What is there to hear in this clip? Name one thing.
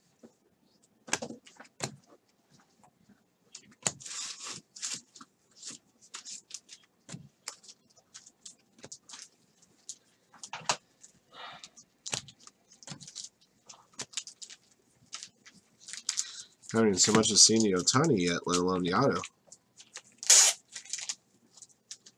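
Trading cards flick and rustle as they are sorted by hand.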